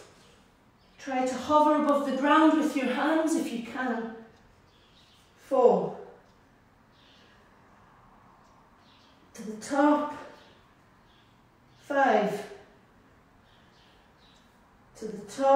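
A woman speaks in short bursts, close by.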